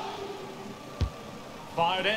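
A football is struck hard with a thud.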